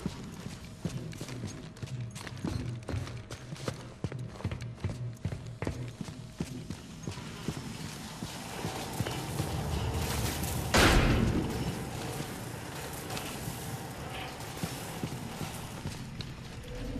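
Heavy footsteps thud on a metal floor at a quick pace.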